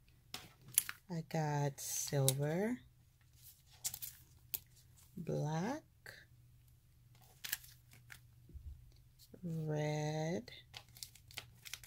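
Stiff plastic sheets click and crinkle as they are handled.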